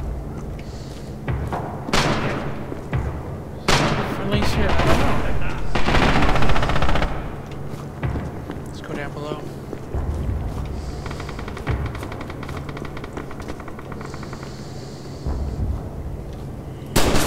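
Footsteps climb a staircase indoors.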